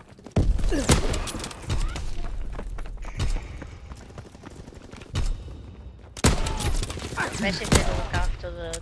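Rifle shots crack loudly, one at a time.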